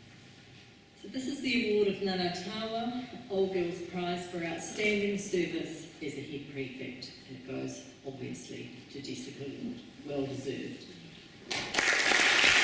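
An elderly woman speaks calmly through a microphone in a large hall.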